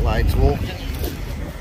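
A man speaks close into a clip-on microphone.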